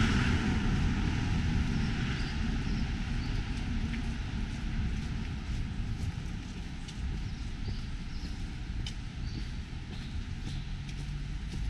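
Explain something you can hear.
Footsteps of a passerby tap on pavement nearby.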